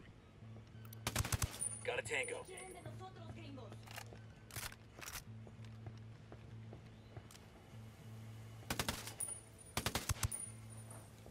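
A silenced rifle fires several quick muffled shots.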